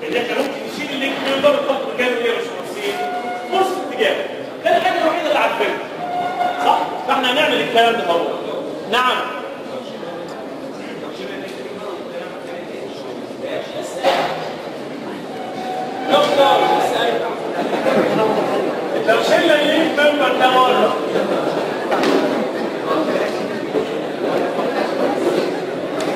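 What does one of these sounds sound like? A middle-aged man lectures with animation.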